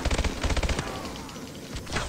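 An automatic rifle fires a rapid burst in a video game.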